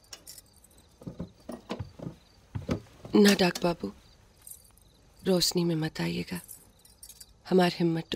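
A woman speaks quietly, close by.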